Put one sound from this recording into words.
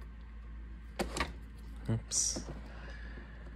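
Metal parts click and clack as a padlock is set in a small vise.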